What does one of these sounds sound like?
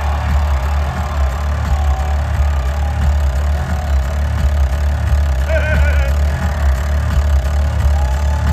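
A rock band plays loudly through a large sound system.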